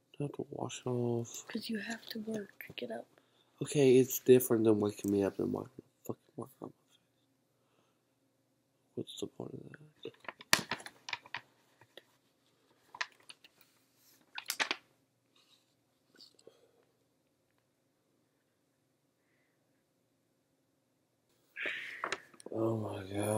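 A young man talks sleepily, close by.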